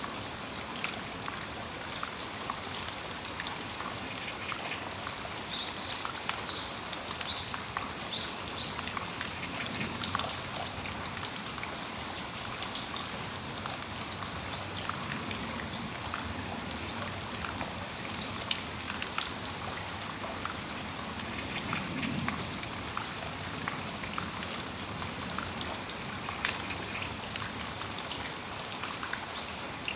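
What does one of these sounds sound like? Raindrops drip from an awning edge.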